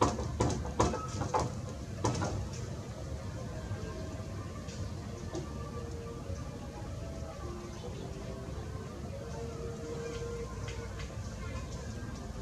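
A monkey yawns softly nearby.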